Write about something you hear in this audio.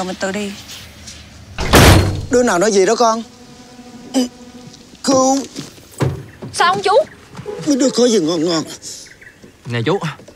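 Young women talk with animation close by.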